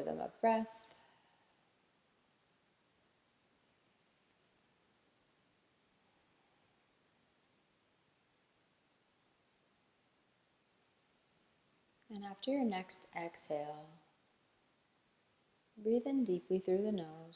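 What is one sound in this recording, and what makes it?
A young woman speaks calmly and softly, close by, with pauses.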